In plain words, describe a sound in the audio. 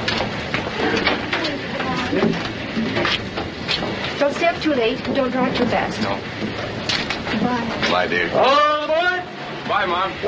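A man talks with animation, heard through an old, crackly recording.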